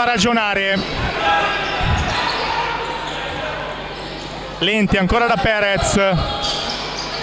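A basketball bounces with dull thuds on the floor.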